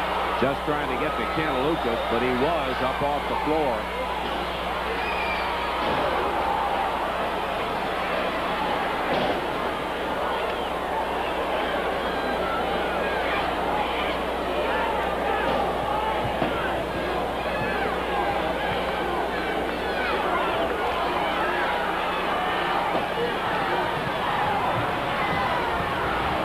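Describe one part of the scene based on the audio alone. A large crowd shouts and cheers in a big echoing hall.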